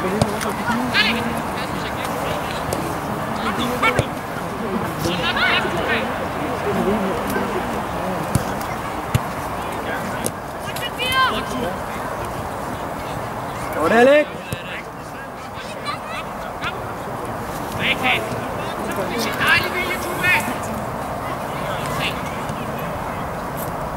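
Young men shout to one another across an open outdoor pitch.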